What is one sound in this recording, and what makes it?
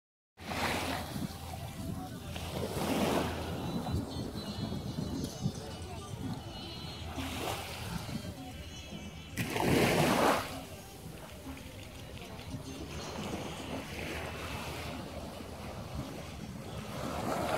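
Small waves lap gently on the shore.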